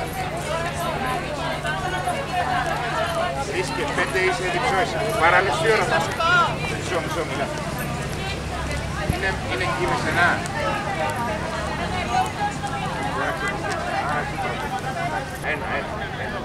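A crowd of men and women talks nearby, with many voices overlapping.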